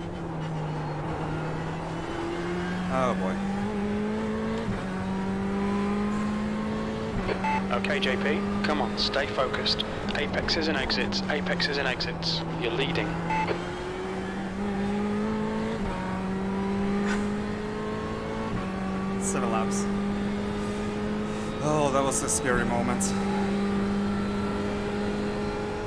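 A racing car engine drones steadily, stepping up in pitch through the gears.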